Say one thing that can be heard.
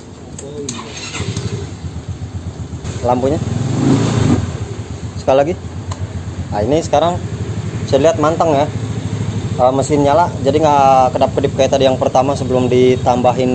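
A scooter engine idles with a low hum.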